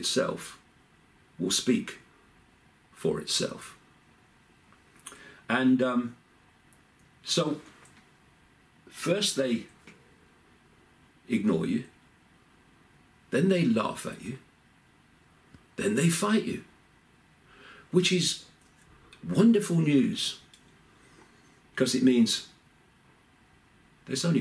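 An older man speaks calmly and close by, in short phrases with pauses.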